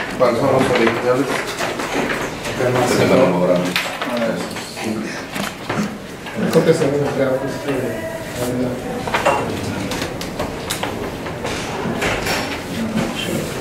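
Paper rustles as pages are turned and handled.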